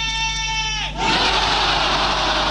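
A large crowd roars in a big echoing hall.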